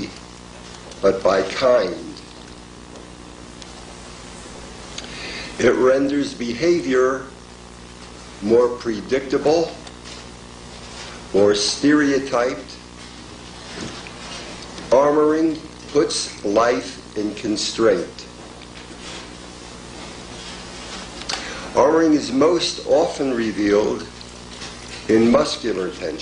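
A middle-aged man speaks slowly and deliberately, close to a microphone, with long pauses.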